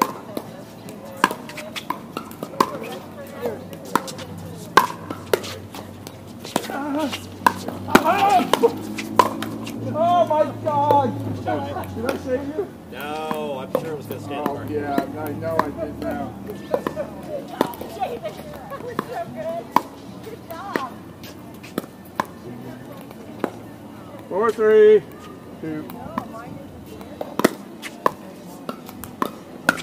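Paddles hit a plastic ball with sharp pops.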